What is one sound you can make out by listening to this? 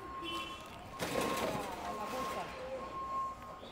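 A plastic-wrapped package rustles as it is lifted into a shopping cart.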